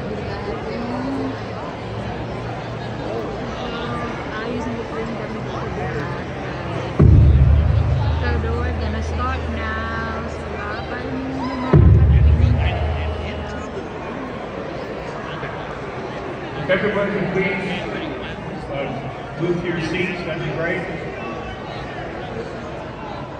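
A crowd of adults chatters in a large room.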